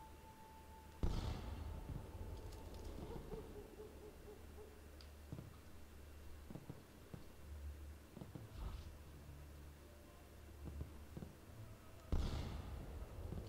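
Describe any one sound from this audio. A pistol fires with a sharp bang and a short echo.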